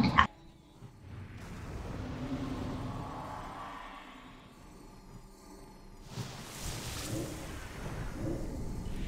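Magic spells whoosh and shimmer amid a fantasy battle.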